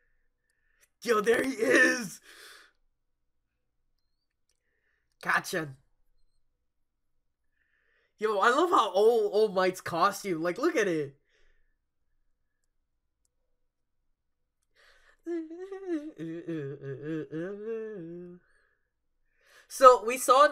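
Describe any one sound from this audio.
A young man laughs close by in short bursts.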